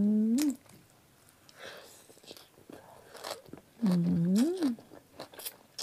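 A young woman slurps noodles close to a microphone.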